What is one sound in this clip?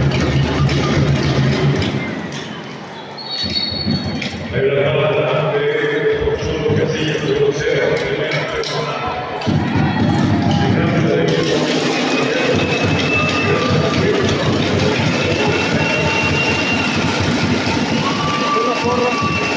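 A large crowd cheers and chatters in an echoing arena.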